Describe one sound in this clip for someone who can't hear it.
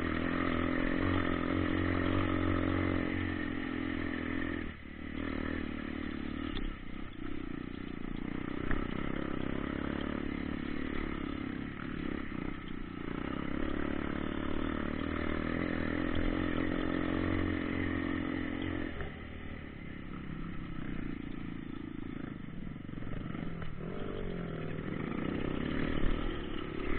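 A dirt bike engine rumbles close by, rising and falling as it revs.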